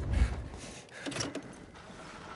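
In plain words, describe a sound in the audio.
A heavy metal switch clunks.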